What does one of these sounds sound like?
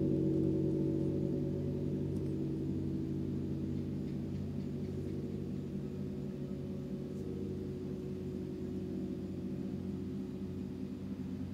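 Large gongs hum with deep, sustained tones that slowly fade.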